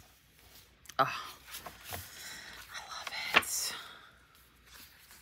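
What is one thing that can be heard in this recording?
A notebook page rustles as it is turned.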